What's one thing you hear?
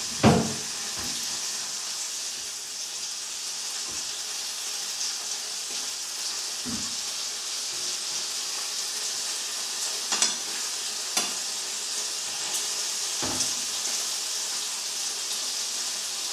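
A fork scrapes and taps against a frying pan.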